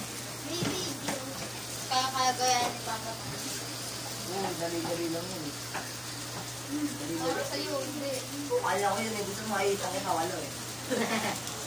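A young boy talks cheerfully nearby.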